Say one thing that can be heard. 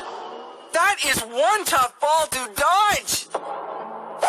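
A young man speaks with animation through a television speaker.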